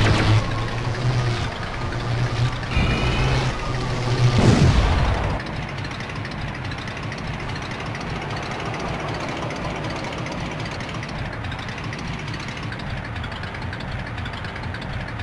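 A small car engine hums and revs steadily.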